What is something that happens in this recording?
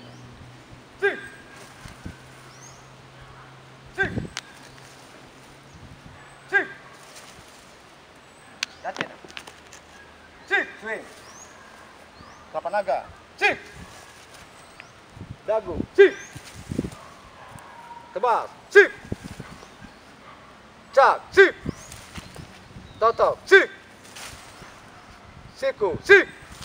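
A man shouts short commands outdoors.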